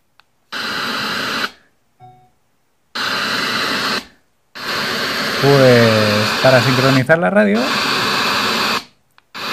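A small speaker plays loud bursts of hissing sound, stopping and starting again.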